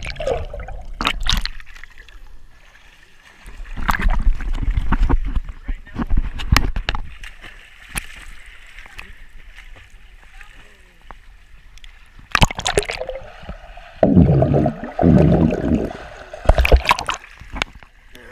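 Water splashes and sloshes as a swimmer moves through a pool.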